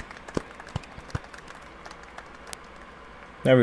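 A small group of people clap their hands sparsely.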